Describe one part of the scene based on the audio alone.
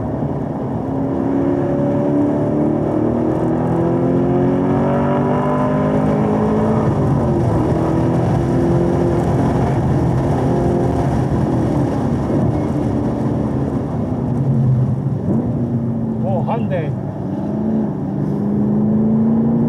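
A car engine roars, climbing in pitch as it accelerates and dropping at gear changes.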